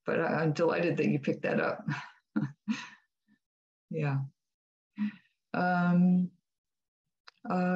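A middle-aged woman speaks warmly over an online call.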